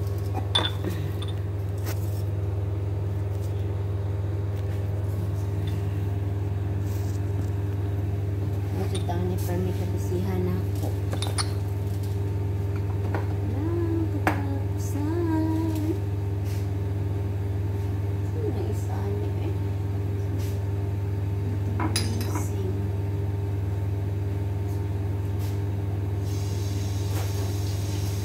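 An air conditioner hums steadily.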